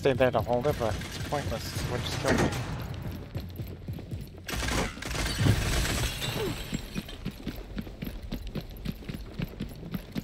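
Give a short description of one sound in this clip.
Footsteps run on a hard floor.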